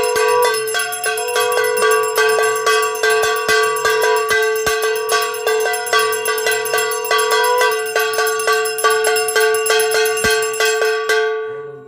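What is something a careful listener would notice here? A hand bell rings rapidly and steadily, then its last stroke fades away.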